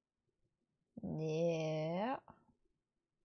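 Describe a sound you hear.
A young woman hums a long note close to a microphone.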